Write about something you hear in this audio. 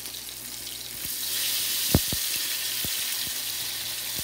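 A slice of food drops into hot oil with a louder hiss.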